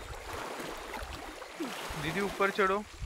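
Water splashes as a figure wades through it.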